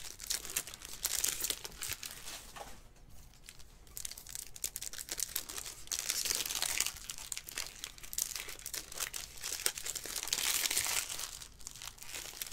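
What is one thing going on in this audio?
Trading cards rustle and flick as hands shuffle through a stack.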